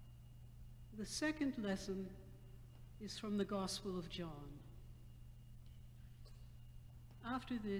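An elderly woman speaks calmly into a microphone in a reverberant hall.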